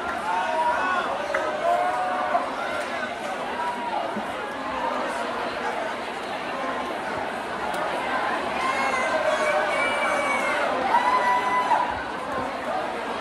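Electric guitars play loudly through amplifiers.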